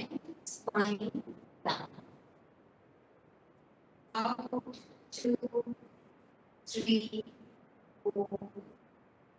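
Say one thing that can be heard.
A woman gives instructions calmly through a microphone, in short bursts with pauses.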